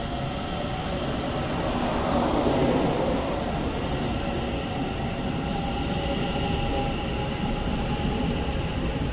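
Train wheels squeal faintly on the rails.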